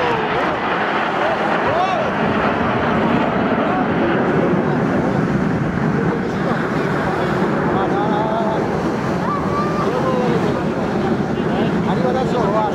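Jet engines roar steadily overhead.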